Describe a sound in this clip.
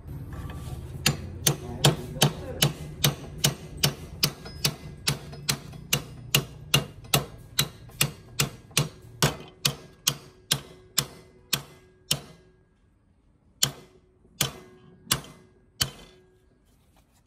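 A hammer strikes metal, blow after blow.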